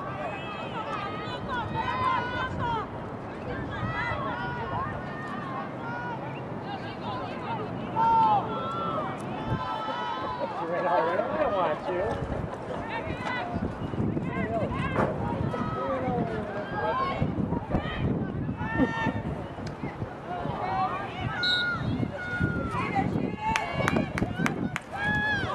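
Young women shout and call to each other outdoors across an open field.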